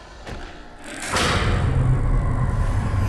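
A heavy metal door slides open with a loud whoosh.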